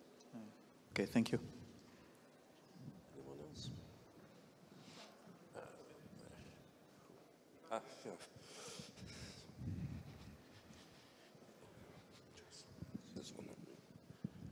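A second young man speaks quietly into a microphone.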